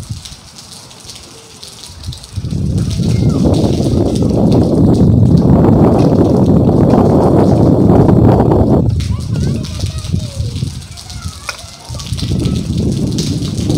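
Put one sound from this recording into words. Rain patters on a metal roof.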